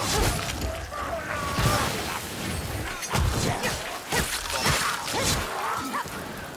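Blades slash and strike with heavy thuds.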